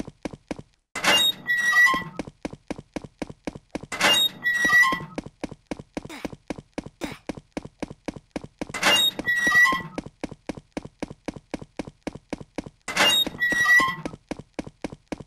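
A door creaks open, again and again.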